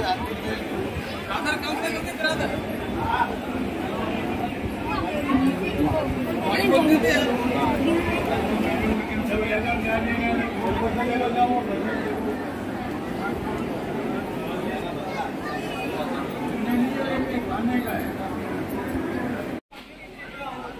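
A crowd murmurs and chatters all around outdoors.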